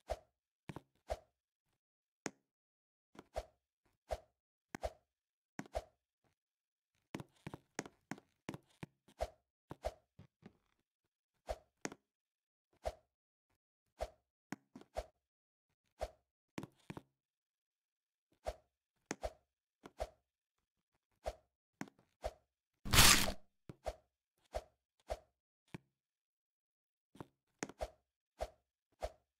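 A game character jumps again and again with short, soft thuds.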